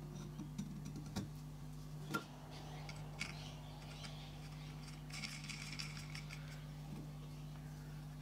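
A wooden propeller knocks against a model engine as it is fitted.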